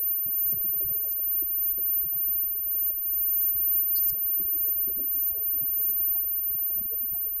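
Drums beat steadily under the band.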